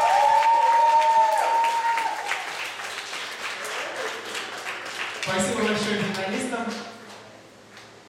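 A small crowd claps and applauds.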